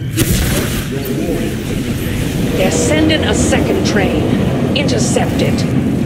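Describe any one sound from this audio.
Small explosions pop and burst.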